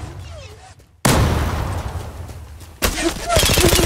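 A smoke grenade bursts and hisses.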